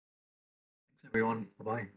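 A man speaks through an online call.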